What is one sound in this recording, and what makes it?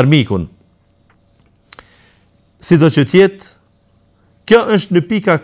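A man speaks calmly and closely into a microphone, pausing between phrases.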